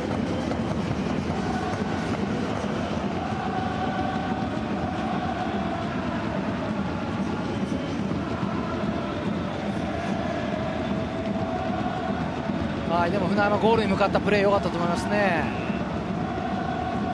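A large stadium crowd chants and sings steadily.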